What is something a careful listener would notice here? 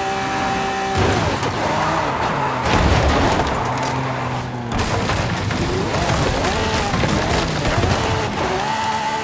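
Tyres skid and scrape as a car slides off the road.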